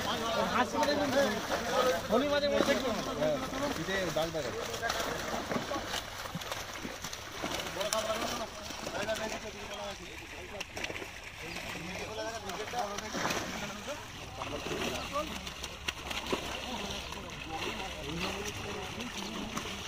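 Several men talk and shout excitedly nearby, outdoors.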